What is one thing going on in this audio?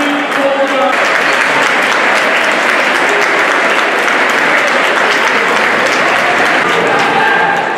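Players clap their hands in applause.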